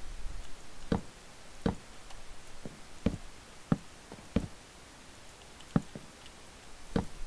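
Wooden blocks are placed with short hollow knocks.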